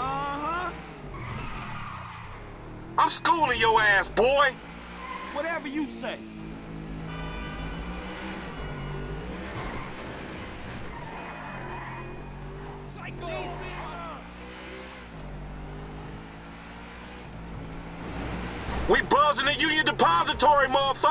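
A sports car engine hums and revs as the car drives.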